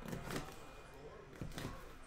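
A knife blade slits plastic wrap on a box.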